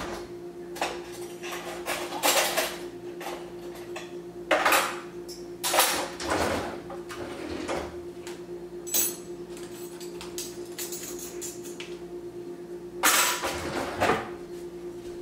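Dishes clatter and clink as they are loaded into a dishwasher rack.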